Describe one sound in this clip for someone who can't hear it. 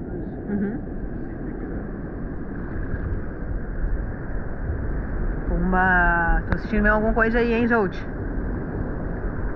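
Sea water splashes and laps close by.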